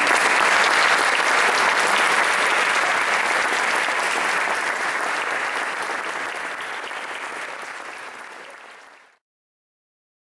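An audience applauds loudly, then the clapping fades away.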